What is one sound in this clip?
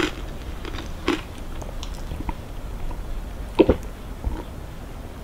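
A plastic snack wrapper crinkles.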